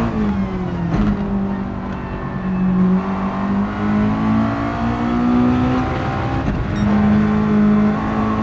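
A racing car engine drones and revs up and down through the gears.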